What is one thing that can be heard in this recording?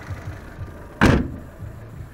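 A car hood slams shut with a loud thud.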